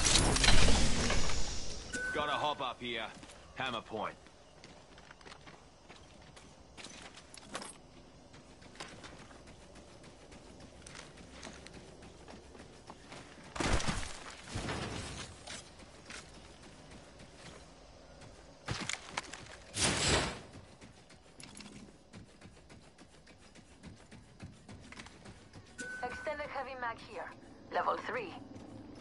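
Footsteps patter quickly while running.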